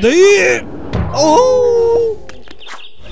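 A man shouts loudly in alarm.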